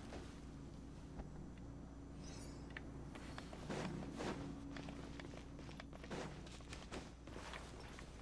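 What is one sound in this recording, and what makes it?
Light footsteps crunch on sand and rock.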